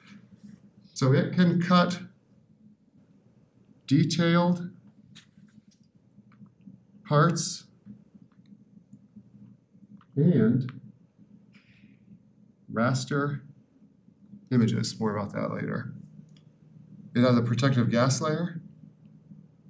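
A man lectures through a microphone, speaking calmly in short bursts with pauses.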